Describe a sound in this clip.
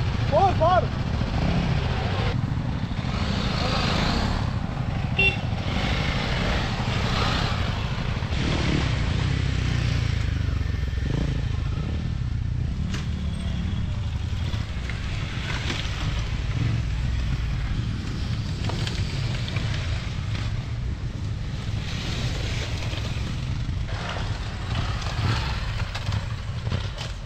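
Dirt bike engines rev and roar loudly nearby, outdoors.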